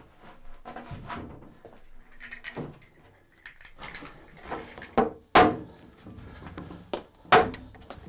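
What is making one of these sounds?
Large wooden boards scrape and knock loudly as they are moved.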